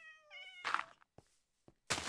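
A block crunches as it is broken.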